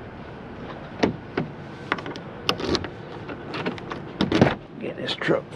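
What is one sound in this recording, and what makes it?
A truck door latch clicks open.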